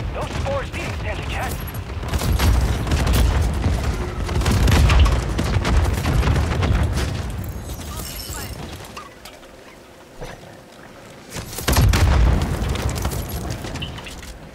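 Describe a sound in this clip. Gunfire and energy blasts boom loudly in a game.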